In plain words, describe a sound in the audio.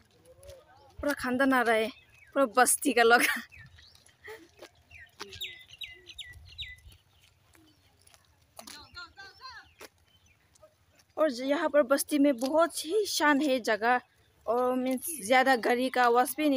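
A young woman talks with animation close to the microphone, outdoors.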